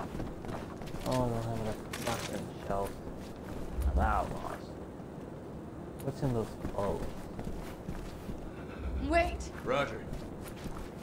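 A young man talks close to a microphone, in short bursts.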